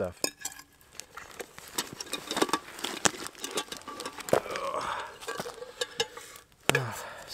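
Metal cookware clinks and scrapes.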